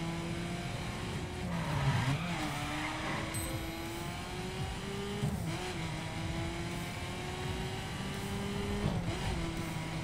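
A car engine revs hard and shifts gears as the car speeds along.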